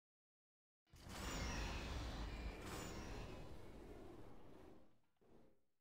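A door slides open with a low rumbling whoosh.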